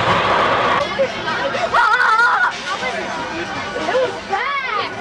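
Riders scream on a roller coaster.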